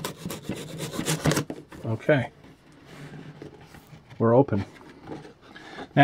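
A cardboard box scrapes and taps on a cloth surface.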